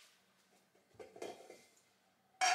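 A metal pot clinks as it is set down.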